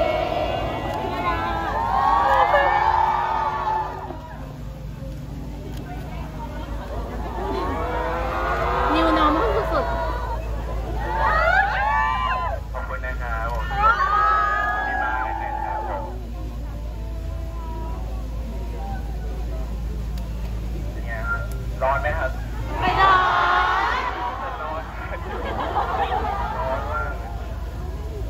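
A young man speaks through a megaphone, loud and slightly distorted.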